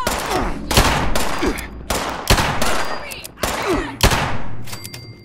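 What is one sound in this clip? Gunshots crack in quick succession and echo.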